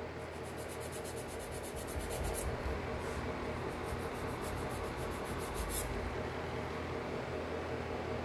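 A nail file rasps against a fingernail.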